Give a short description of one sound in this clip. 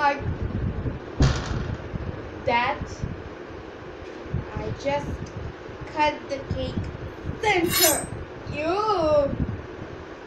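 Two young girls talk with animation close to a microphone.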